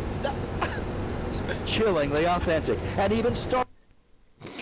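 A middle-aged man speaks calmly, as if reading the news, through a small tinny speaker.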